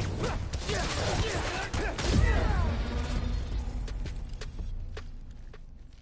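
Punches and kicks land with sharp thuds during a fight.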